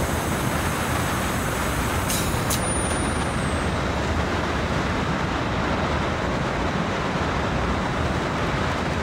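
A diesel locomotive engine rumbles steadily as the train rolls along the rails.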